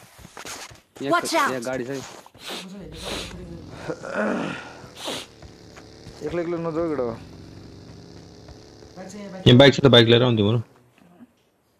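Young men talk with animation close to a microphone.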